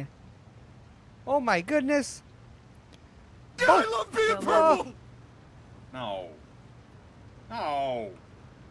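A young man speaks casually, close to a microphone.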